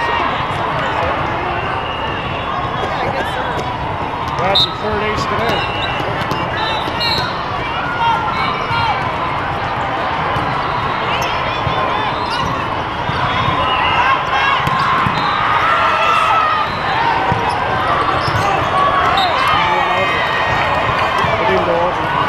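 Many voices chatter and shout across a large echoing hall.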